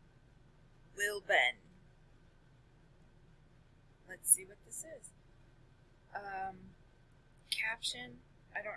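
A young woman speaks in short bursts, close to a microphone.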